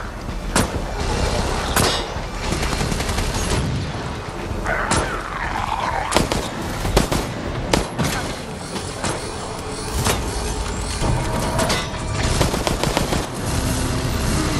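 Gunshots crack sharply in quick bursts.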